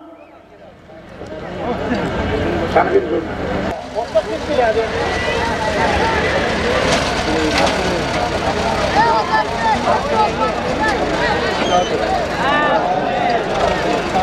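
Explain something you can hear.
A crowd of men shout and call out outdoors.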